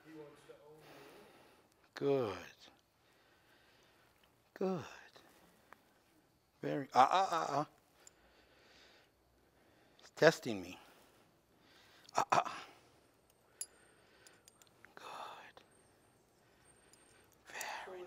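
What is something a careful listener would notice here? A man speaks calmly nearby in short phrases.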